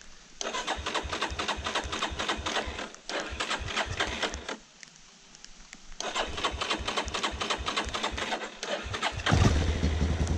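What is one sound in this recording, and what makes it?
A small engine cranks over repeatedly without catching.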